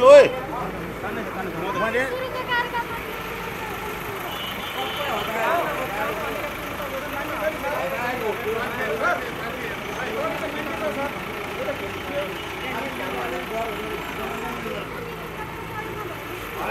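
A crowd of men talks in the background.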